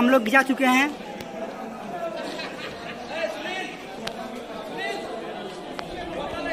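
A crowd of people chatter in the background outdoors.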